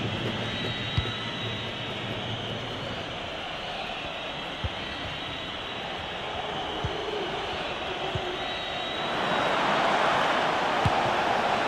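A ball is kicked with dull thuds.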